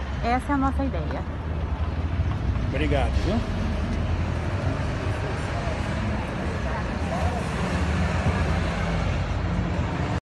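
Traffic hums along a busy street outdoors.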